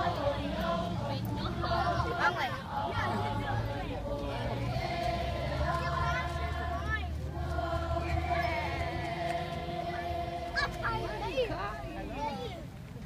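A crowd of children and adults sings together outdoors.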